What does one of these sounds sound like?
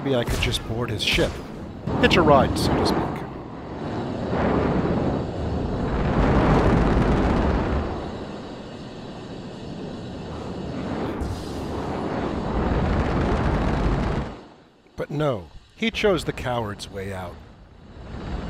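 A small spaceship's engines rumble as the ship pulls away and fades.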